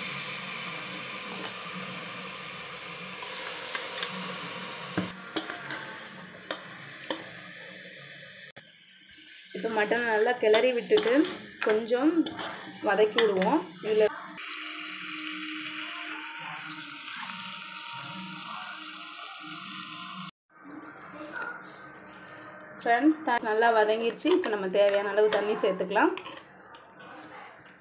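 A metal ladle scrapes and clinks against a pot.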